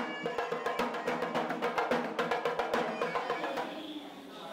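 Drums beat in a steady rhythm.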